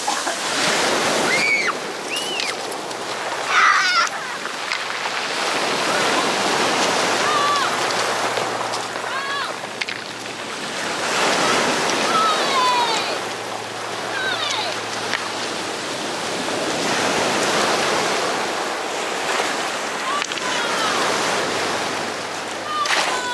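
Waves wash and crash onto a pebble beach.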